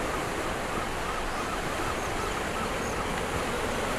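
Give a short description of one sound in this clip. Waves wash against rocks by the sea.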